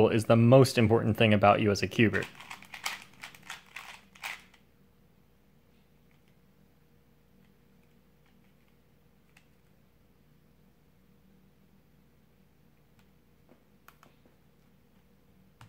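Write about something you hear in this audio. A small puzzle cube clicks softly as its layers are twisted quickly.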